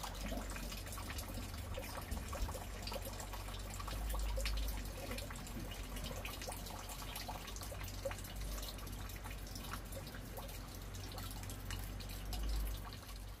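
Water trickles and splashes as it is poured from a cup.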